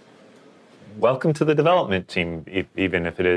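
A young man speaks with mild enthusiasm.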